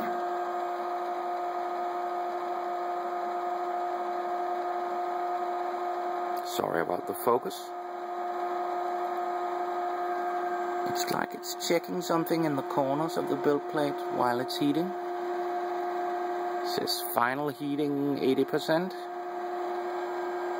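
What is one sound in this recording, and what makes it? A machine hums steadily with a high whine.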